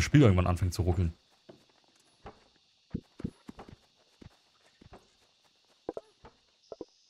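An axe chops at wood with light knocks.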